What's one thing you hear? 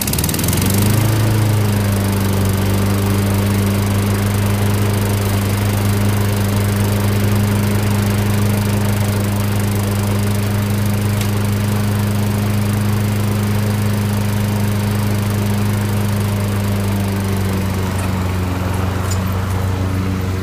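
A lawnmower engine starts up and runs with a steady loud drone.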